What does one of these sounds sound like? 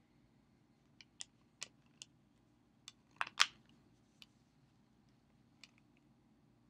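A plastic disc case clicks and rattles in hands.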